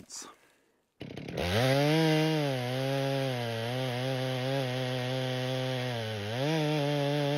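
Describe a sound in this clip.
A chainsaw cuts steadily through a thick log with a loud droning whine.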